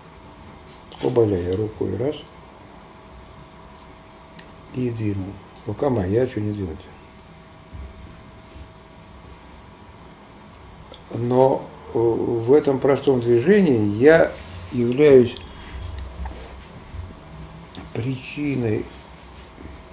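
An elderly man speaks calmly into a nearby microphone, in short bursts with pauses.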